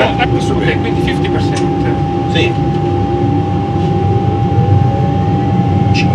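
Jet engines roar steadily as an airliner rolls down a runway.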